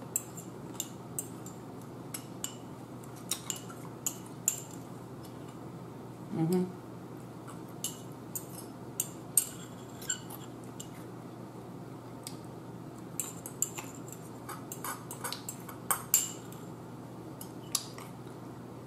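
A spoon clinks against a small cup.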